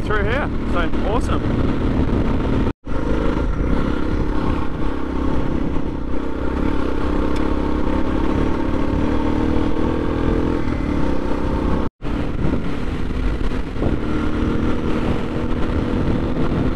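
A motorcycle engine hums steadily at a constant pace.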